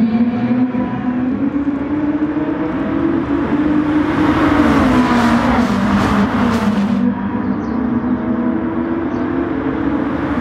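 Racing car engines roar loudly at high revs.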